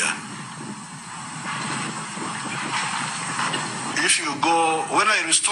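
An elderly man speaks calmly into a microphone, heard through a television speaker.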